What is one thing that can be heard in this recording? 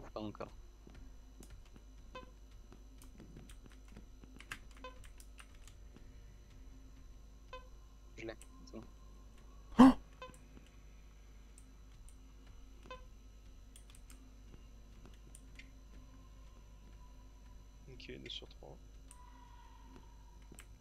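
A handheld scanner gives off faint electronic blips.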